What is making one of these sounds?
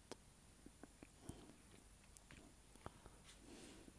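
A cable connector clicks softly into a socket.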